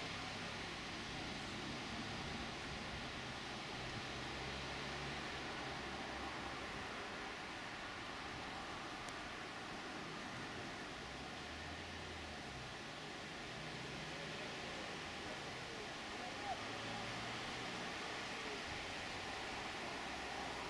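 A diesel train engine rumbles steadily as the train approaches.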